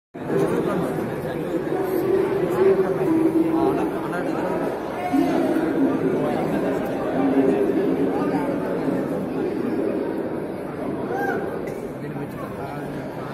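A crowd of children chatters outdoors in the distance.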